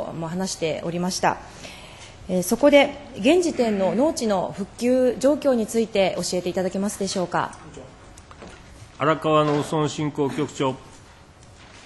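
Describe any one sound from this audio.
A young woman speaks formally into a microphone.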